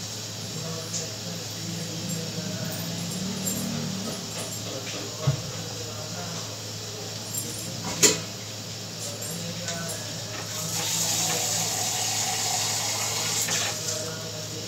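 A spoon scrapes against a metal pot.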